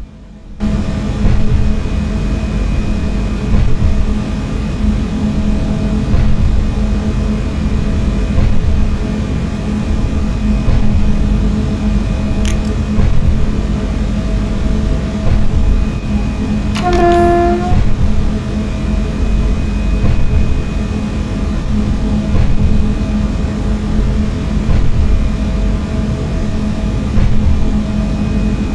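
An electric train's motor hums steadily while running.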